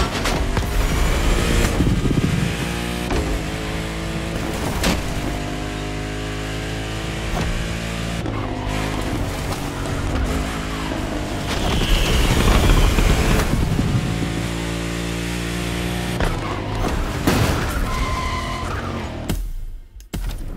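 A sports car engine roars at high revs, shifting gears as it speeds along.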